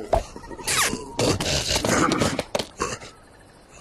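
A man's voice shouts with animation in a cartoon style.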